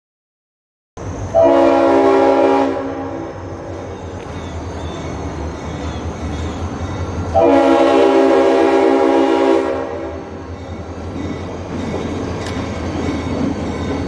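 A diesel locomotive rumbles as it approaches.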